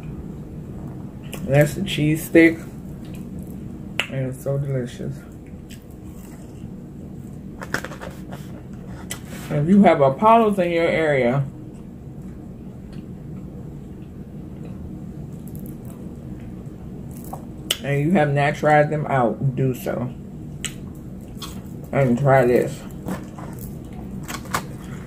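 A young woman chews food with crunching, smacking sounds.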